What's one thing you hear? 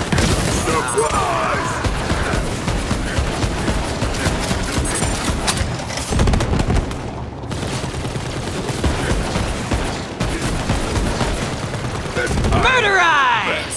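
Laser beams crackle and zap.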